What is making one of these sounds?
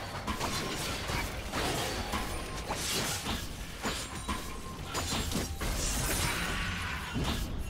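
Game weapons clash and strike in quick hits.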